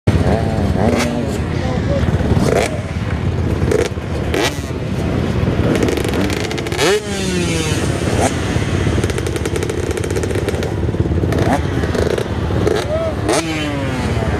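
Dirt bike engines rev up and down nearby, in bursts.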